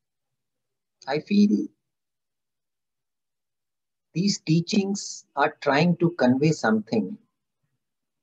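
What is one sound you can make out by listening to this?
A middle-aged man speaks calmly into a microphone on an online call.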